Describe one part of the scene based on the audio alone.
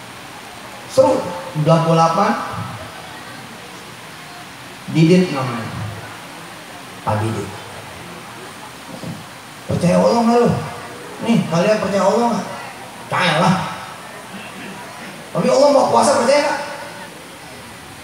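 A man speaks slowly into a microphone over a loudspeaker, with pauses between phrases.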